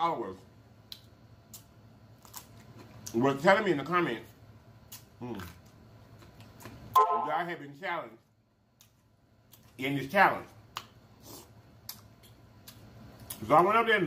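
A man chews food with wet, smacking sounds.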